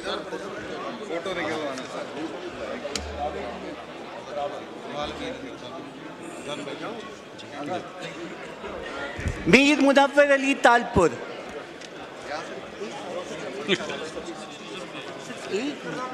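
Several men chatter in a crowded, echoing hall.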